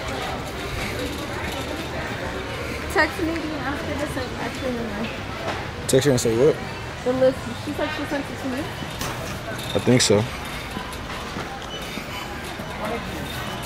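A shopping cart rattles as it rolls along.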